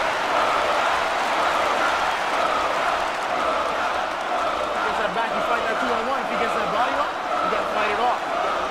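A large crowd roars and cheers steadily in a big echoing arena.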